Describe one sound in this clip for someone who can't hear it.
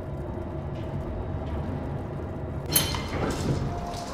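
An elevator rumbles as it moves.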